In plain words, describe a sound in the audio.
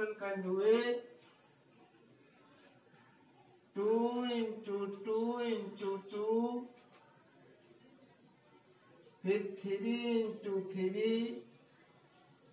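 A man speaks calmly and clearly at close range, in short phrases with pauses.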